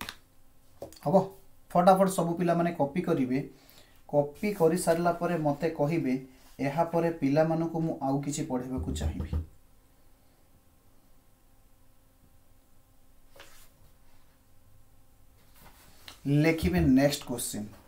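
A man speaks calmly and explains into a close microphone.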